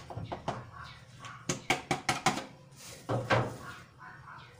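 A plastic container taps against the rim of a bowl.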